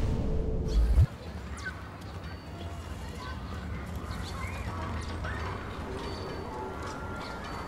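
Footsteps walk along a path.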